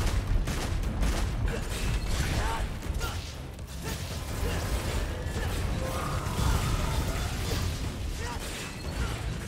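Sword strikes and impacts clash in rapid bursts.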